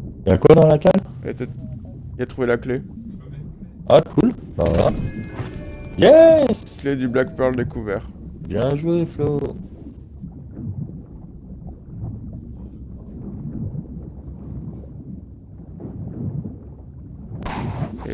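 Water burbles and murmurs softly underwater.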